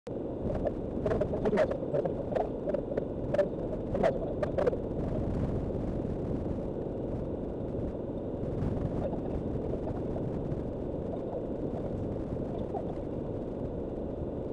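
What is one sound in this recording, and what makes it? A car rumbles steadily along a gravel road, heard from inside.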